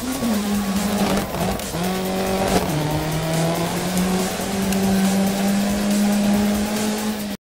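A rally car engine revs loudly and shifts through gears.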